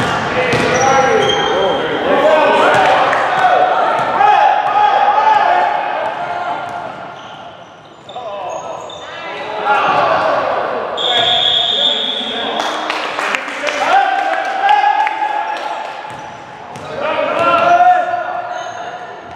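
Young girls shout and call out to each other in a large echoing gym.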